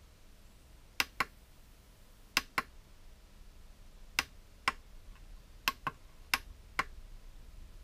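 Buttons on a small remote click as they are pressed.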